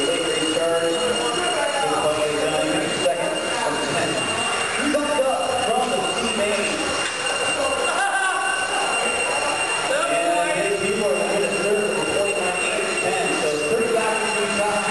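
Small electric model cars whine as they race around a track indoors.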